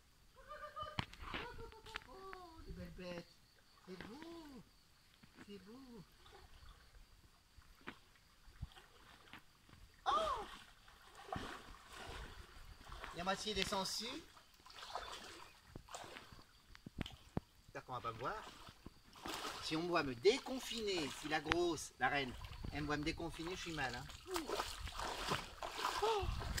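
Legs splash as someone wades through shallow pond water.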